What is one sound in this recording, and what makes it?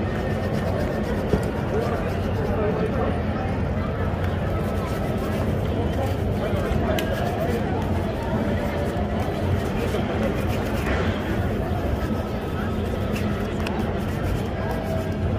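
A busy street crowd murmurs and bustles outdoors.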